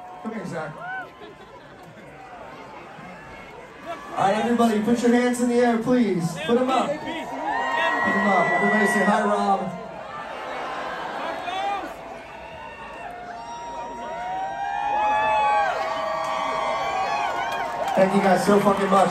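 A large crowd cheers and screams loudly in an echoing hall.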